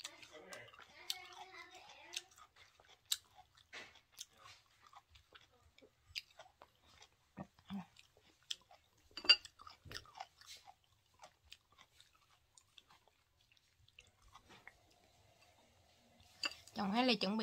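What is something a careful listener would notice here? A young woman chews and smacks her food loudly, close to the microphone.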